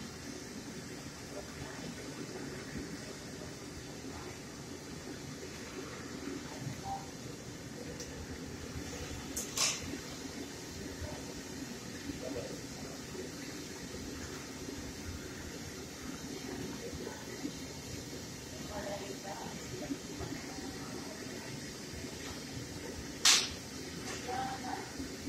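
Oil bubbles and sizzles steadily in a wide pan.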